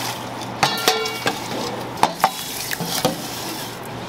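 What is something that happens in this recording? Broth is poured into metal bowls with a splash.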